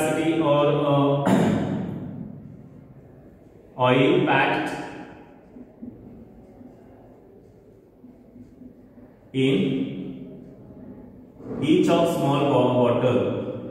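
A man speaks clearly and steadily into a close microphone, pausing now and then.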